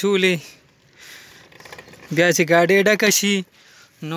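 A wheelbarrow rattles as it rolls.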